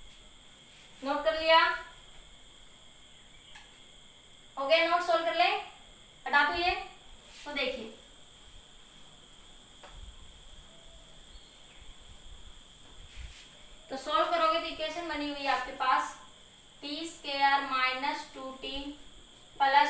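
A woman speaks calmly, explaining, close by.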